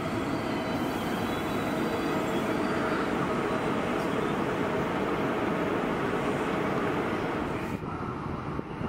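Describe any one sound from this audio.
A train pulls out of a station with a rushing, rumbling roar.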